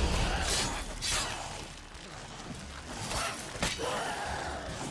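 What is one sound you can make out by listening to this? A sword slashes and strikes a creature with heavy impacts.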